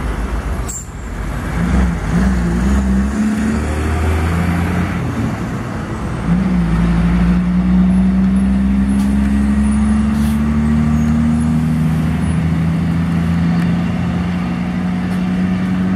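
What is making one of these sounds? A diesel truck engine drones and rises in pitch as the truck approaches and passes close by.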